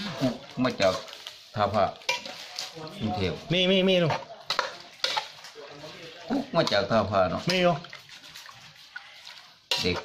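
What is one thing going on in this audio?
A metal ladle scrapes and clinks against a pot while stirring a wet mixture.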